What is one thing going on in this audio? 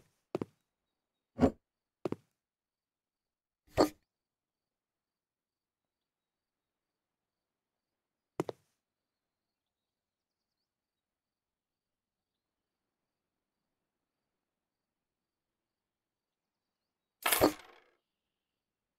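Short sharp clicks and thuds sound a few times.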